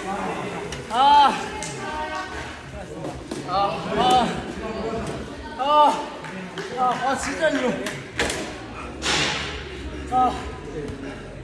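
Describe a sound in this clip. A young man groans and grunts with strain close by.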